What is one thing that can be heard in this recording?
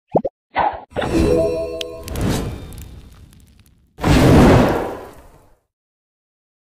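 A fireball bursts with a loud whooshing blast.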